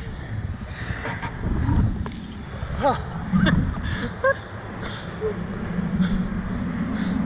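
A young man screams and shrieks with excitement close by.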